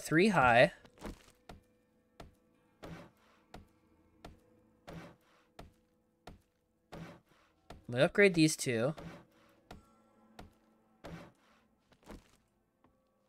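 An axe knocks on wood in quick repeated blows.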